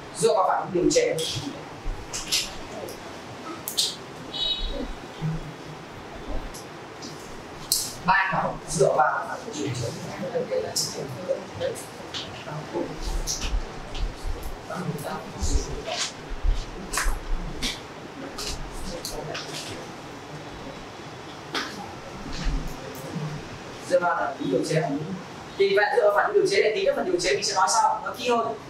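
A young man speaks calmly to a class in a room with some echo.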